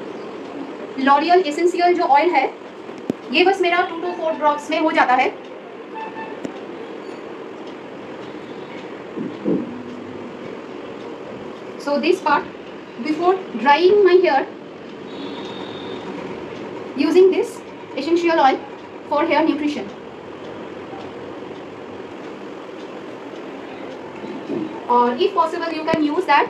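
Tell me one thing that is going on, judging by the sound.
A young woman talks calmly close by, in short bursts.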